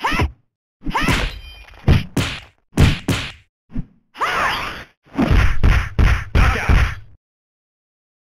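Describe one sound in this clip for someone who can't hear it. Fighting-game punches and kicks land with quick, heavy thuds and whooshes.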